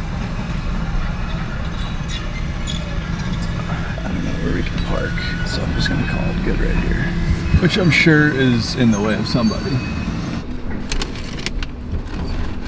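A car engine hums steadily from inside the cab.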